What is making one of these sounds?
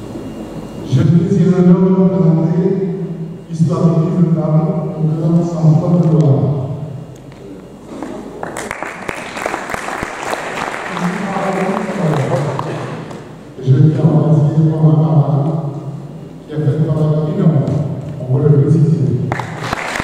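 A man speaks into a microphone over loudspeakers in a large echoing hall, pausing now and then.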